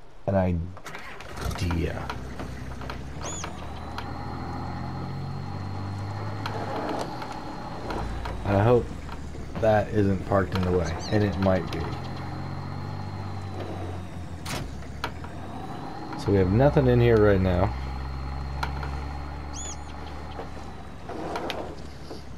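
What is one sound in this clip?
A pickup truck's engine hums and revs as it drives.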